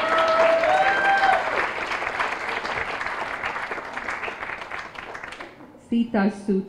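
An audience applauds and cheers in a large hall.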